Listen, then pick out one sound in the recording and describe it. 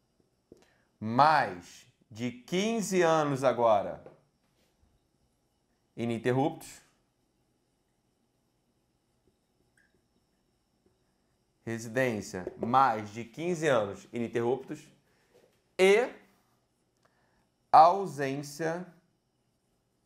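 A man speaks calmly in short phrases, close to a microphone, with pauses between them.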